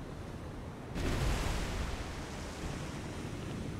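Shells splash heavily into the sea nearby.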